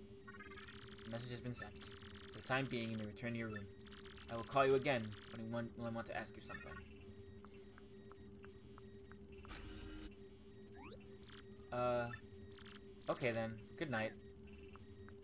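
Short electronic blips chatter rapidly as game text prints out.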